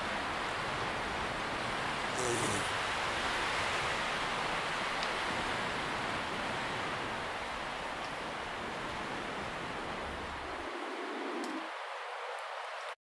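Wind blows steadily outdoors with a loud rushing hiss.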